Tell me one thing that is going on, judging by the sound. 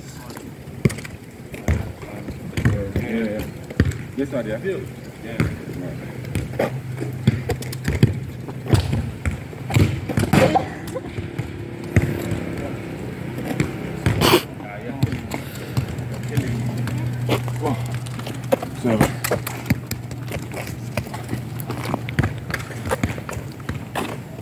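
A football thumps as it is kicked on a hard court.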